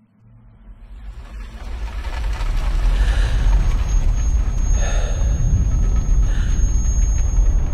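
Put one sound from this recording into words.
A race car tumbles and crashes with a deep roar.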